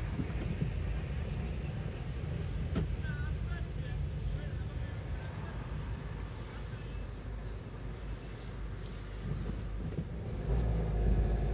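A car engine idles at low volume from inside the car.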